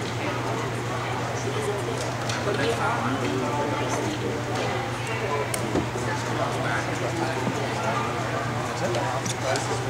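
Young girls chatter and call out nearby in an echoing gym.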